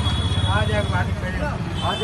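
A metal pot scrapes and clanks.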